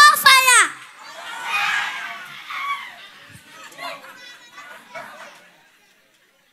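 A young boy speaks into a microphone.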